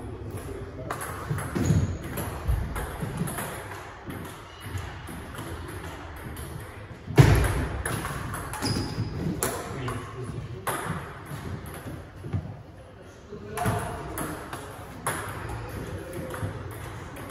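A ping pong ball clicks back and forth on paddles and a table.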